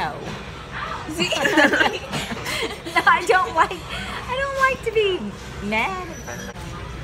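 A woman laughs nearby.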